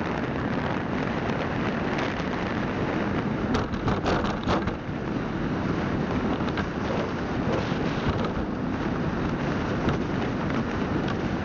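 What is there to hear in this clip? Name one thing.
Tyres roll on rough pavement with a low rumble.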